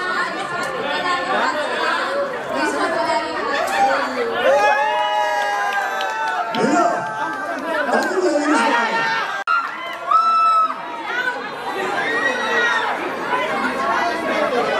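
A crowd chatters and cheers in a large room.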